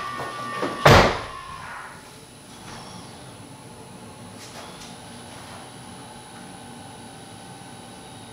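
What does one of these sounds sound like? A car charger whines with a steady, high pitch.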